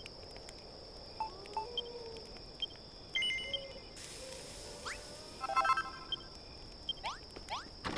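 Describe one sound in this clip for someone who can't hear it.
Short electronic blips chime as a menu opens and closes.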